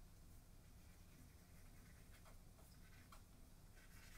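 A glue stick rubs softly against paper.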